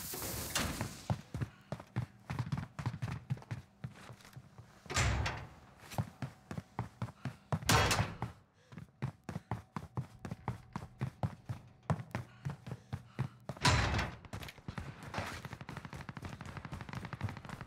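Footsteps tap quickly on hard floors and stairs.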